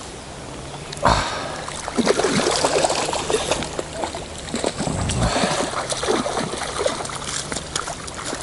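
A hooked fish splashes at the water's surface.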